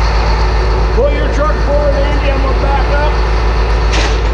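A man speaks calmly close by, outdoors.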